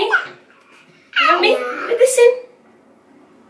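A toddler babbles and squeals excitedly.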